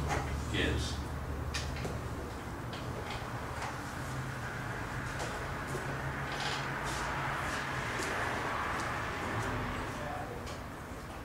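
An elderly man speaks calmly, as if giving a lecture, in a room.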